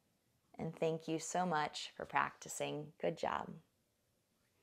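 A young woman speaks calmly and warmly into a nearby microphone.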